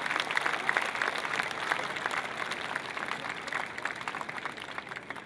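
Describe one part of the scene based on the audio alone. A large crowd claps and applauds outdoors, slowly fading.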